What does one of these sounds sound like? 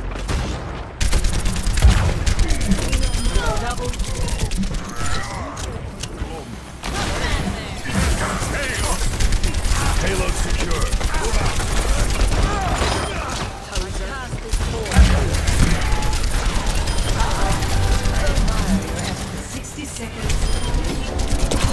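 Blasts and impacts crash in a chaotic fight.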